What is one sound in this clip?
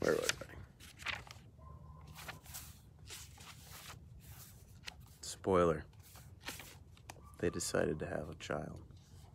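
Small clicks and rustles come from something handled close by.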